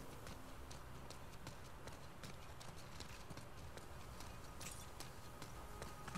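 Footsteps tap lightly on stone paving.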